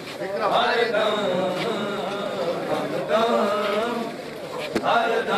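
A man chants loudly in a long, mournful melody.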